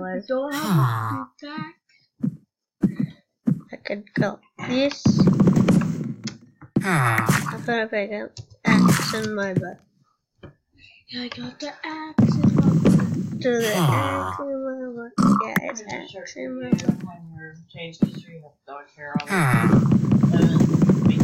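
A boy talks with animation close to a microphone.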